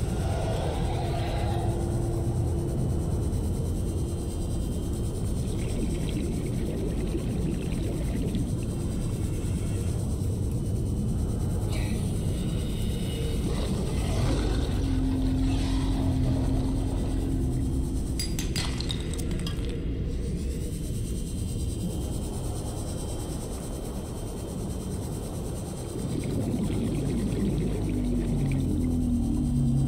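A low underwater engine hum drones steadily throughout.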